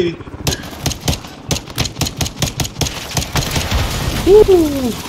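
A pistol fires rapid shots.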